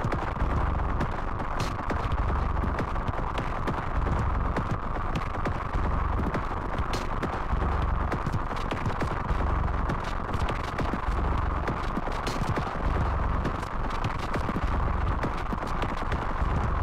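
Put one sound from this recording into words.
Sharp electronic percussion clicks in a rhythm.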